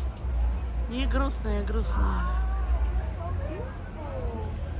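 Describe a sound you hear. A parrot squawks and chatters nearby.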